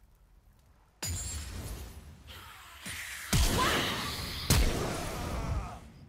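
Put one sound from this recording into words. Game spell effects burst and whoosh in quick succession.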